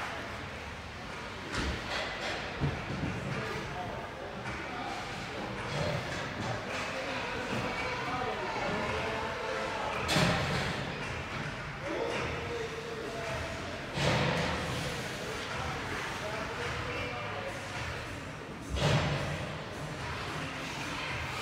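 Ice skates scrape and glide on an ice rink.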